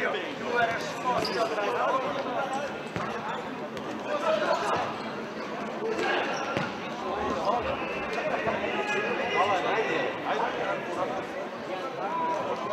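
Sneakers squeak sharply on a hard hall floor.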